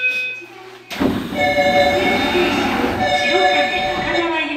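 Train doors slide open with a loud hiss and rumble.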